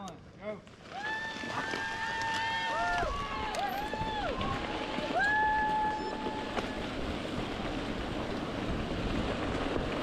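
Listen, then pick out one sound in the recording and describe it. Bicycle tyres roll over a gravel track.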